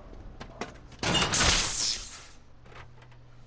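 A metal panel scrapes open.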